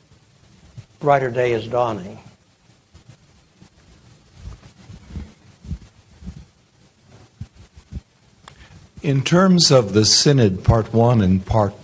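An elderly man speaks calmly through a microphone in a large room.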